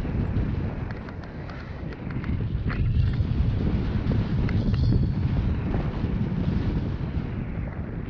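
Strong wind buffets a microphone, roaring and rumbling.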